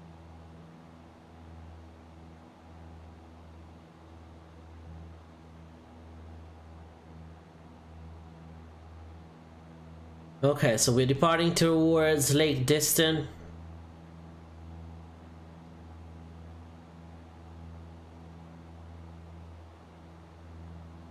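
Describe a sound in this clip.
A light aircraft engine drones steadily.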